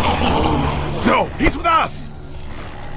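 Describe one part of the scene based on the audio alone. A man with a deep voice shouts back angrily.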